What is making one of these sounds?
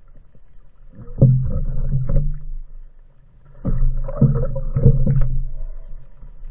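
Water churns and splashes at the surface.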